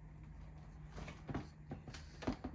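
A cabinet door clicks open.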